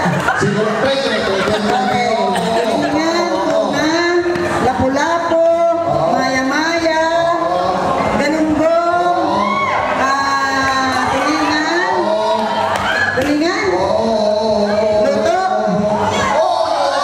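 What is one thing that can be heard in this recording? A middle-aged woman speaks steadily into a microphone through a loudspeaker.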